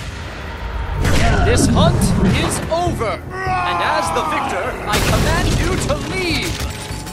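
A man shouts angrily and loudly.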